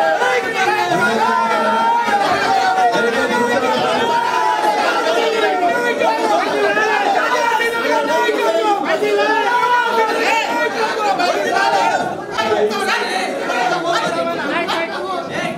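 A man speaks loudly and with animation through a microphone and loudspeaker.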